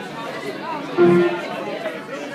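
An electric guitar rings out a short note through an amplifier.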